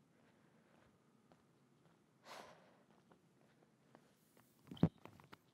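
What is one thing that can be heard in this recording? Shoes tap softly on a wooden floor.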